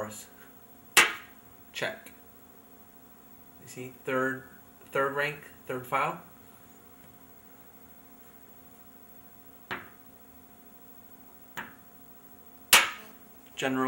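Wooden game pieces click sharply as they are set down on a board.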